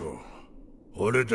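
A man speaks calmly and quietly.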